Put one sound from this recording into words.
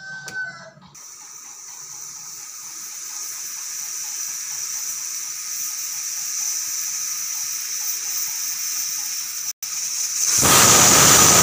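A pressure cooker hisses steadily, rising slowly.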